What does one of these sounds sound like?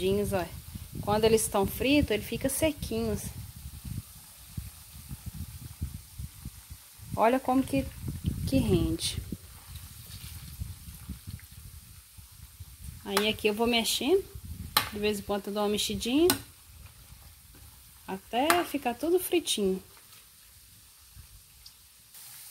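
A metal ladle scrapes and clinks against a metal pan.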